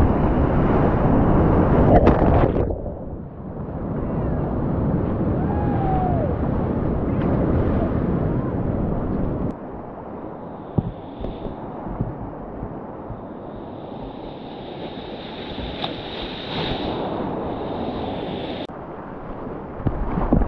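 A kayak paddle splashes in the water.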